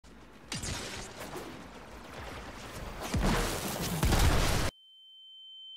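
A monstrous creature's attacks whoosh and boom with deep rumbles.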